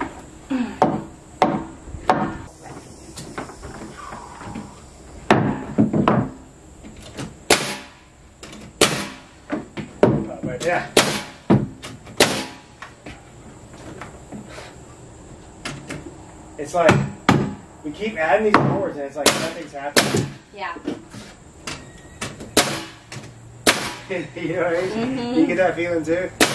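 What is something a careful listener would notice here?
A pneumatic nail gun fires nails into wooden deck boards.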